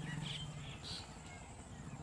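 A bird chirps softly.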